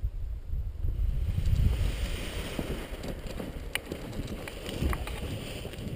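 A paraglider canopy rustles and flaps as it fills with air.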